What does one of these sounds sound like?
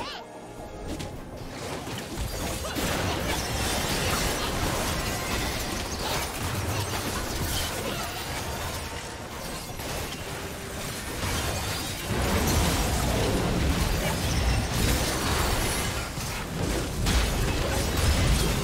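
Magic blasts and clashing weapons crackle and boom in a rapid, busy fight.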